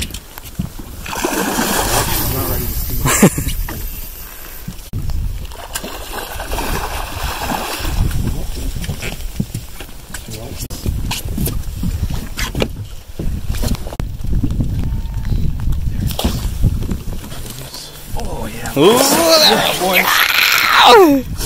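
A fish splashes loudly in the water.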